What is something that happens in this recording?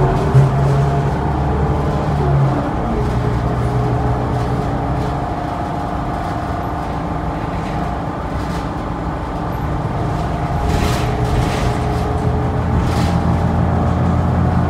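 A bus rattles and creaks as it rolls along.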